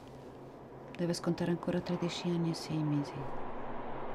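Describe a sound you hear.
A woman speaks softly and seriously nearby.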